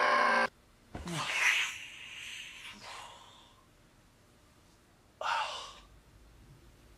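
A young man groans and cries out in distress.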